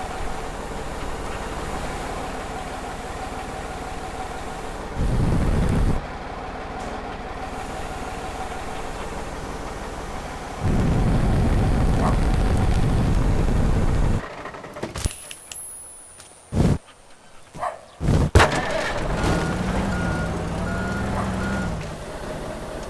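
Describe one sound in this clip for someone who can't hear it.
A heavy diesel mobile crane engine rumbles.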